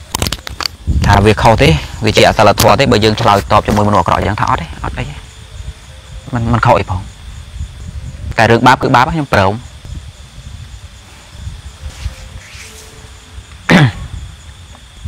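A young man speaks calmly, close to the microphone.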